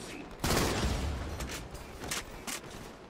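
A loud explosion booms and crackles, then fades.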